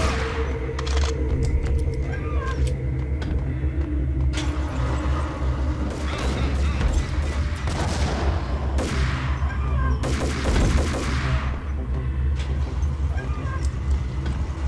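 An automatic rifle fires sharp bursts of shots that echo.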